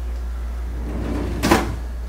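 A drawer slides open.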